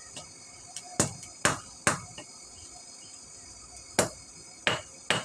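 A hammer strikes metal on an anvil with sharp ringing clangs.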